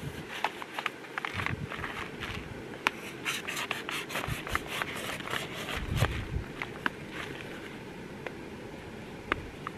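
A plastic packet crinkles and rustles.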